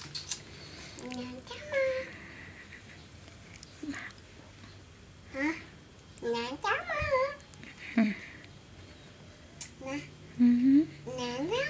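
A young child babbles and laughs close by.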